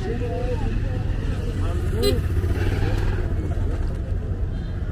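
A scooter rides past close by.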